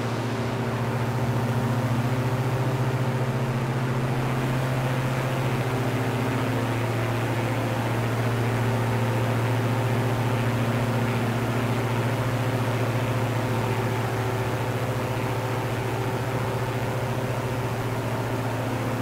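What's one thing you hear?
A small propeller plane's engine drones steadily in flight.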